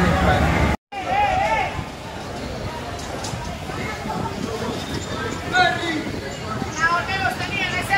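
People talk and call out on a street below.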